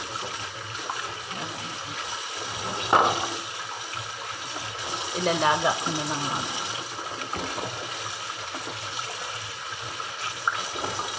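Gloved hands rub and rinse food under running water.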